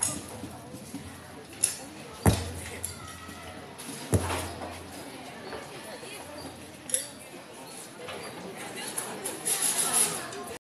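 A group of drummers plays hand drums outdoors, with loud booming hits and quick taps.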